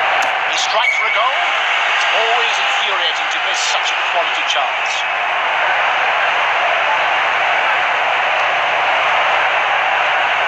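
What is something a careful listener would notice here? A large crowd roars steadily.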